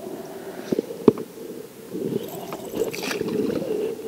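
A small fish splashes as it is lifted from the water.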